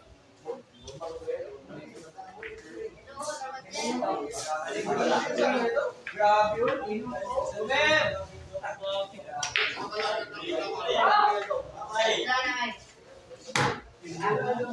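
A crowd of men talk loudly and excitedly nearby.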